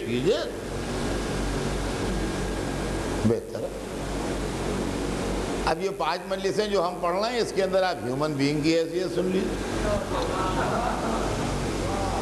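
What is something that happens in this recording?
An elderly man speaks with feeling into a microphone.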